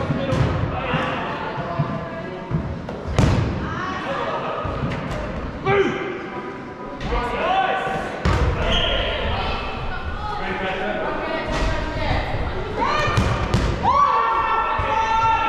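Young women and girls shout and call out in a large echoing hall.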